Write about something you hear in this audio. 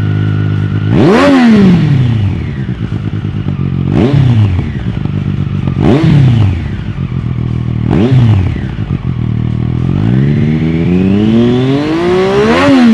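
A motorcycle engine revs sharply several times, then winds up high.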